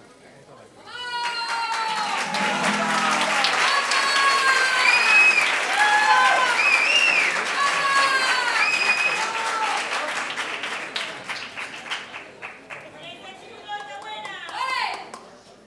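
Women sing together on a stage, heard in an echoing hall.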